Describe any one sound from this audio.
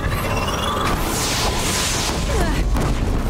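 A fire beam roars and sizzles through the air.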